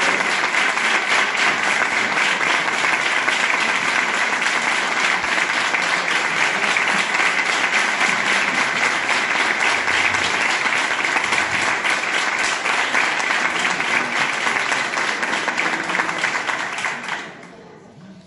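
A crowd applauds loudly in a large hall and then stops.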